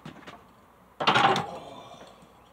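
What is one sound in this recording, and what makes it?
A barbell clanks down hard onto a metal rack.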